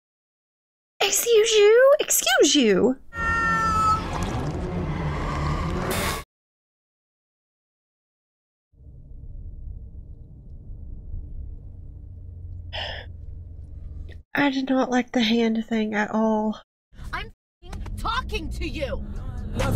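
A young woman exclaims and talks with animation close to a microphone.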